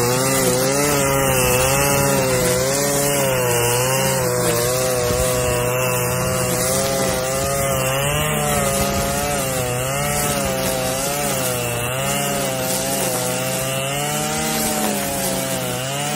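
A brush cutter engine whines loudly and steadily, its pitch wavering as it swings.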